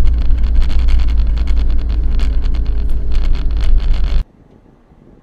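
A car engine drones steadily from inside a moving car.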